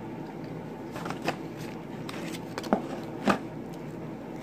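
A snack bag crinkles.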